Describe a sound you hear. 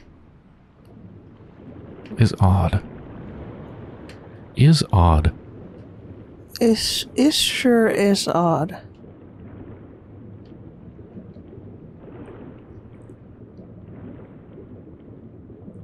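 Water rushes and swirls in a low, steady murmur.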